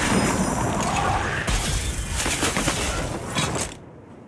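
Icy arrows whoosh and crackle as they rain down.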